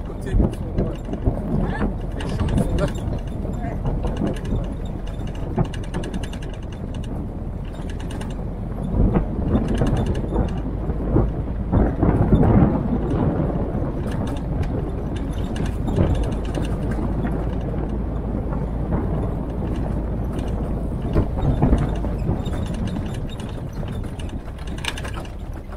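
An old jeep engine rumbles steadily while driving.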